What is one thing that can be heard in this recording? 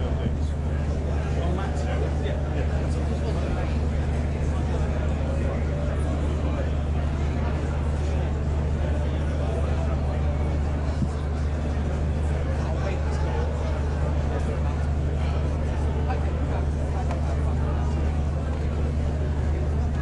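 A crowd chatters and murmurs nearby.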